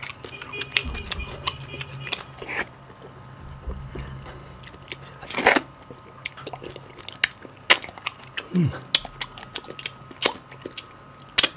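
Soft food squishes and tears between fingers.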